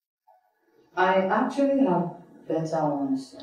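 A woman speaks firmly and with feeling, close by.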